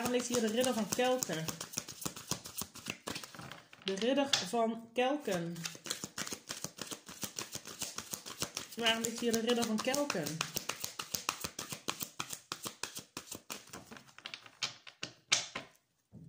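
Playing cards riffle and flick rapidly as they are shuffled by hand.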